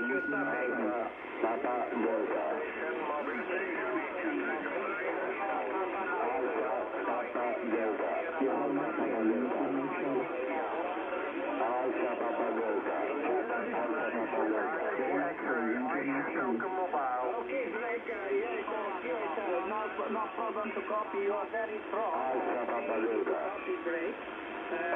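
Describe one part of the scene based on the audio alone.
A radio receiver plays a narrow, crackly transmission through its speaker.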